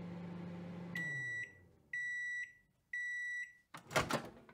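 A microwave oven beeps three times.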